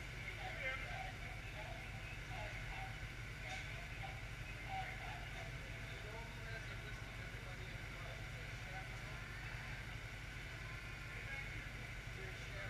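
A large engine idles with a steady low rumble.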